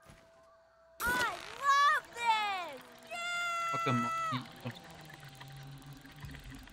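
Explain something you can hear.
A zipline pulley whirs along a cable.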